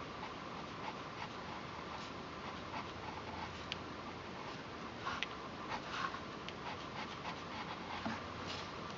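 A pencil scratches and taps softly on paper.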